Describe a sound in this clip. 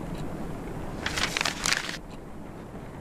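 A sheet of paper rustles as it is picked up.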